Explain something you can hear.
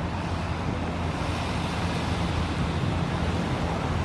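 A car drives past over cobblestones.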